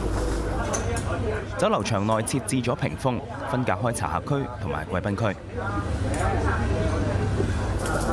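A crowd of diners murmurs and chats in a busy dining room.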